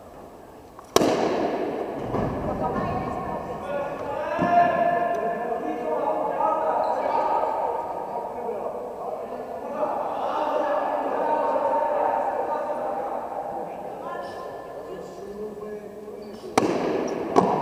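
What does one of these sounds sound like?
A bat cracks sharply against a ball in a large echoing hall.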